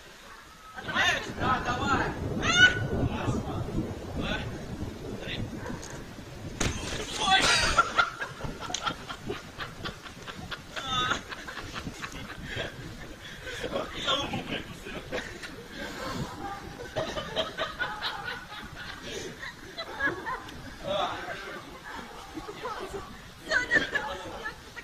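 Young men shout and laugh excitedly outdoors.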